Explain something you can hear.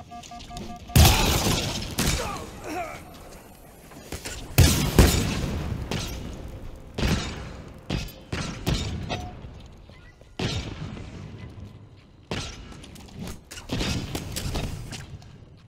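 Energy weapons fire in loud blasts that crackle and fade.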